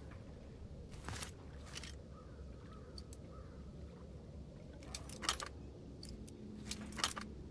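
Metal clicks and scrapes as a lock is picked.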